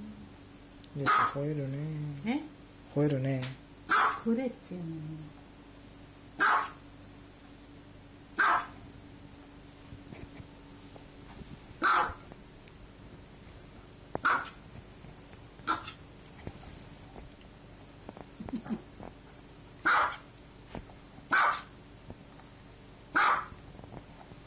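A small dog barks sharply at intervals.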